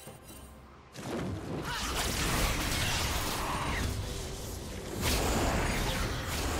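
Spell effects whoosh and crackle in a fight.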